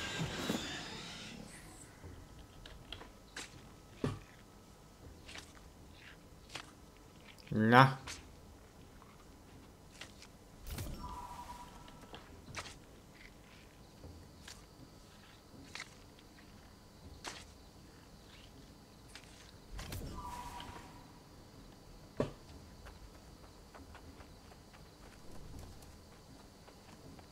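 Footsteps and gear clatter as a figure runs along a path.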